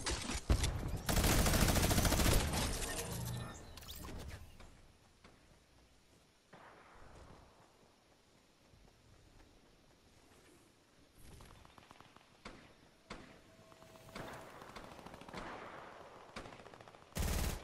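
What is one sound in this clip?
Quick footsteps patter on grass and snow.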